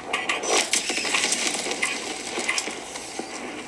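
Explosions roar from a handheld game console's small speakers.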